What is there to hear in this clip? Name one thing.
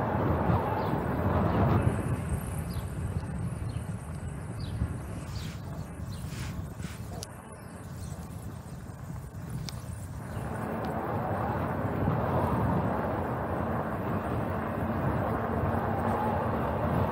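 Wind buffets and rushes loudly past as a bicycle rides along.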